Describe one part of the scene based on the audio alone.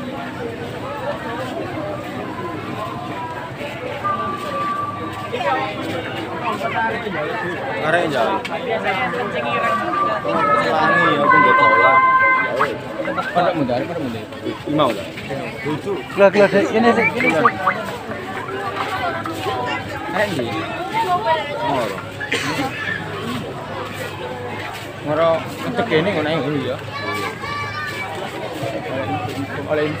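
A dense crowd of men and women chatters all around outdoors.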